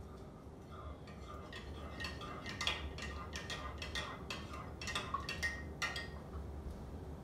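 A spoon clinks rapidly against the inside of a mug.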